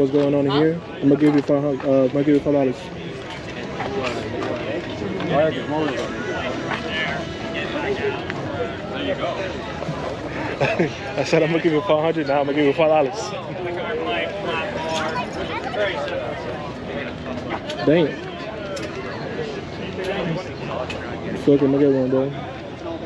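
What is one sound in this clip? A young man talks cheerfully, close to the microphone.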